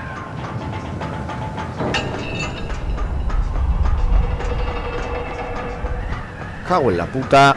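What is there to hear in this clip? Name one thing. A pulley whirs and rumbles along a cable.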